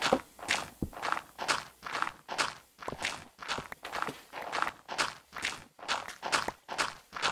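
A pickaxe digs into stone and gravel with quick repeated scraping crunches.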